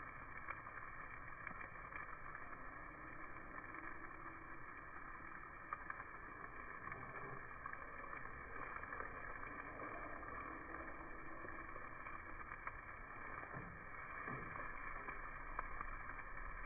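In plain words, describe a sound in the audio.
Metal tongs click against a grill grate.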